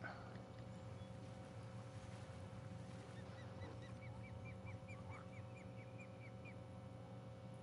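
A fishing reel whirs and clicks as it is wound in.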